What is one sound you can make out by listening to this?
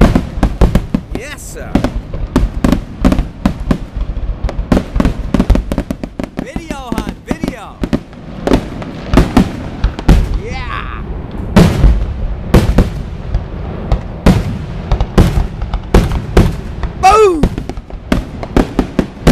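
Fireworks boom and crackle in rapid bursts outdoors.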